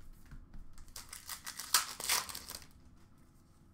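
Plastic wrapping crinkles as a card pack is torn open.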